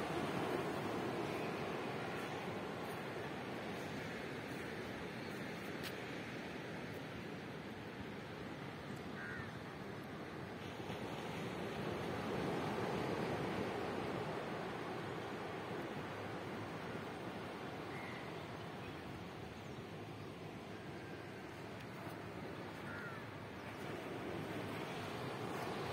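Small waves wash softly onto a sandy shore outdoors.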